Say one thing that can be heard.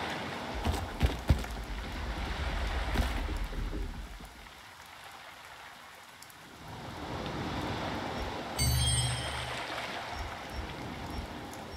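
Water laps gently against a wooden pier.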